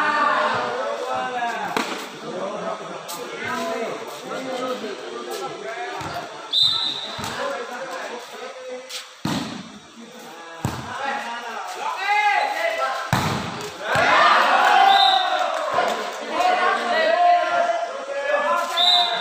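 A crowd of spectators chatters and cheers, echoing under a roof.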